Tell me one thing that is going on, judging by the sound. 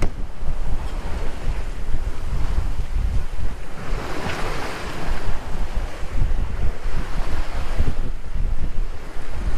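Waves rush and splash against a boat's hull.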